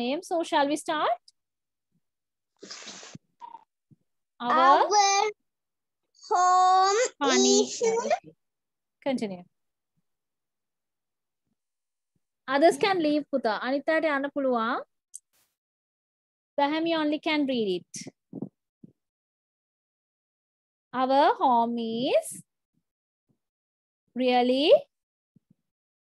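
A child repeats phrases over an online call.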